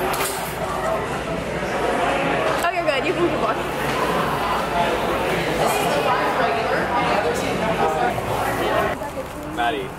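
A crowd chatters in an echoing room.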